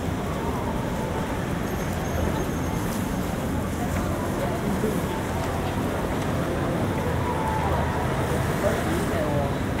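Footsteps tap on a pavement close by.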